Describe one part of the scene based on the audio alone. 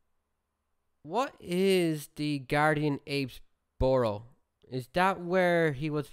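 A young man speaks calmly and close into a microphone.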